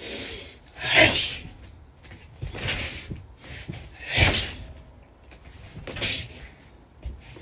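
Blows thud and swish against a hanging jacket.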